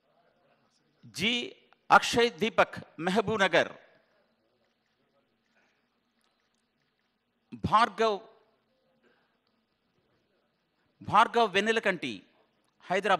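A man speaks loudly in short bursts.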